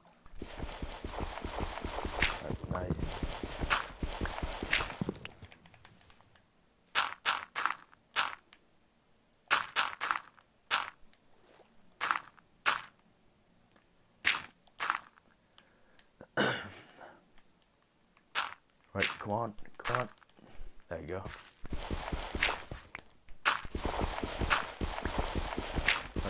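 Dirt and wooden blocks crunch and thud as they are dug out, in quick repeated knocks.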